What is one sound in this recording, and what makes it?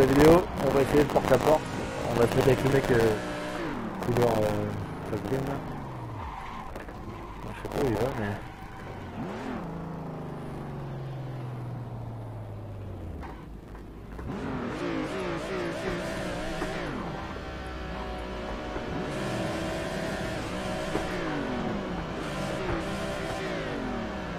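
A car engine revs hard, rising and falling as gears shift.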